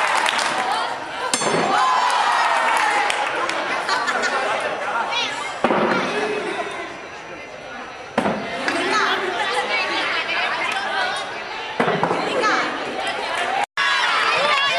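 A crowd of children chatters and shouts outdoors.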